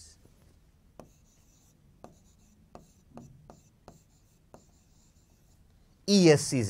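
A marker taps and squeaks on a board.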